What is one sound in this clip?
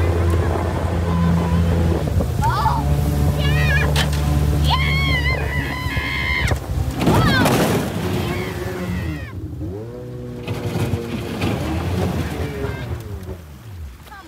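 A boat engine hums steadily, then drops and rises in pitch.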